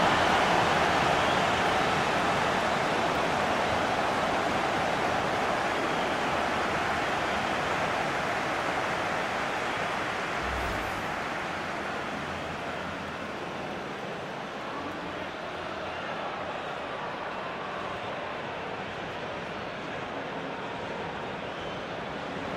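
A large stadium crowd cheers and roars, slowly growing quieter.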